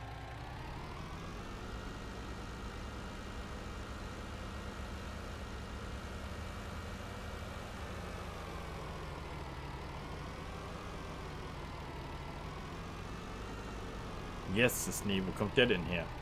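A truck engine drones steadily, its pitch rising and falling with speed.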